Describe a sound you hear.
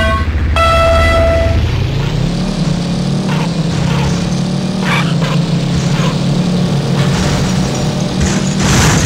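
A racing car engine roars and revs up.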